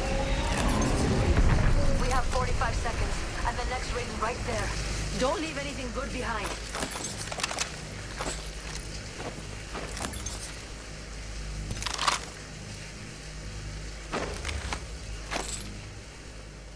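Short menu clicks and pickup chimes sound as items are taken.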